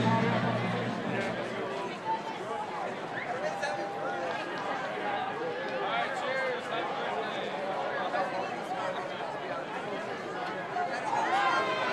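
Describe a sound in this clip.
Young players shout and call out to each other outdoors.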